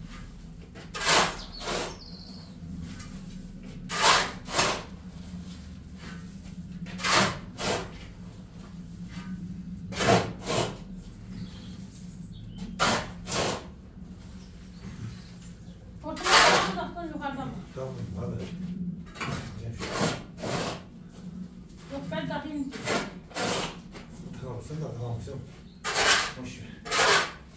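A shovel scrapes and scoops through loose cement mix on a concrete floor, again and again.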